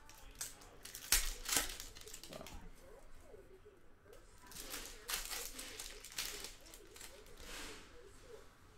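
Trading cards rustle and flick as they are handled.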